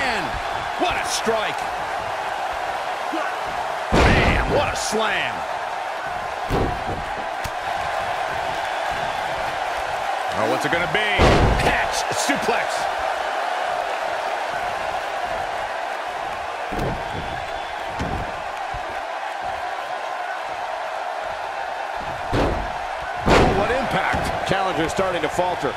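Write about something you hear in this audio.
A large crowd roars and cheers steadily in a big arena.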